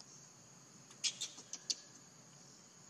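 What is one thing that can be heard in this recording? A baby monkey squeals in short, high bursts.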